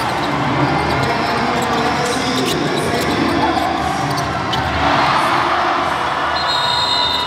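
A large indoor crowd cheers and roars in an echoing arena.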